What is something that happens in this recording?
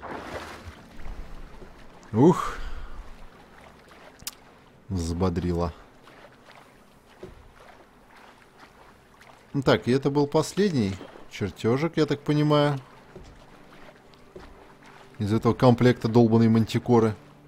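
Water splashes softly as a swimmer strokes through a lake.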